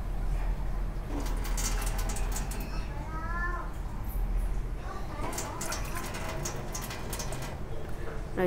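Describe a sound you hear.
Water pours into a metal pot.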